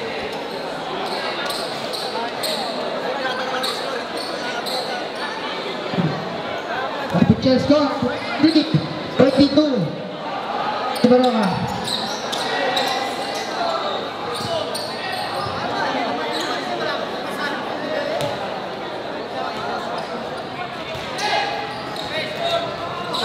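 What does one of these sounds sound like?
Basketball shoes squeak sharply on the court.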